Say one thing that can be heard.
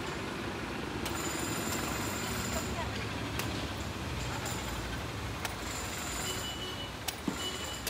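A machete chops into a coconut with sharp knocks.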